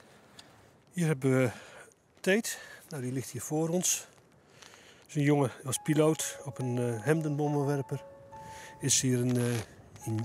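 An older man speaks calmly and clearly, close by.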